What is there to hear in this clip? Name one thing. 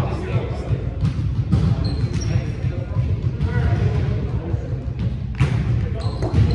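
A ball thumps as a player hits it.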